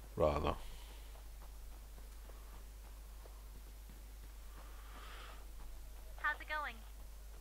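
Footsteps run over dry grass and pavement.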